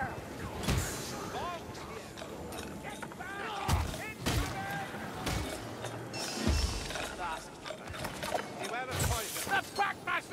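A heavy hammer thuds into creatures in heavy blows.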